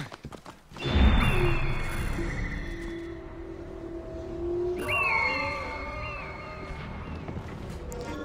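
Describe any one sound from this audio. An eagle screeches loudly overhead.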